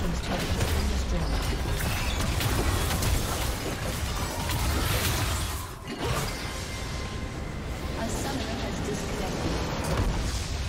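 Magic spells crackle and clash in a busy fantasy battle.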